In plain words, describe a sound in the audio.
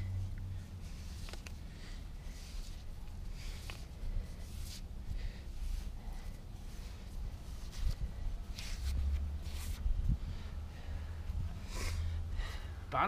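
A man scrapes and digs through soil by hand.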